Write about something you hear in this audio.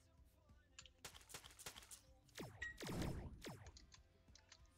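Game spell effects whoosh and blast loudly.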